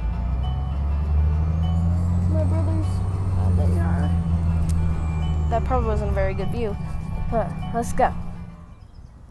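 A young girl talks close by, calmly.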